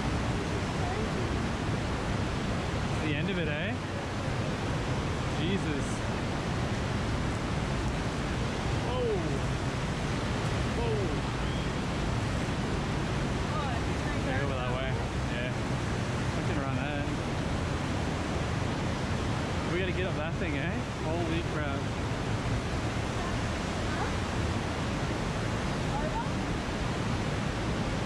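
Water rushes and churns loudly over rocks.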